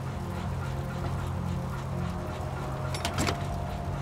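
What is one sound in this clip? A metal lid clanks open.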